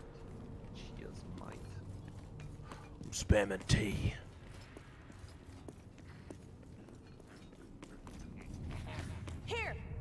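Footsteps patter on stone as figures run through an echoing tunnel.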